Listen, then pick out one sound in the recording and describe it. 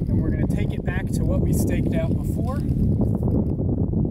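A man talks calmly, close by, outdoors.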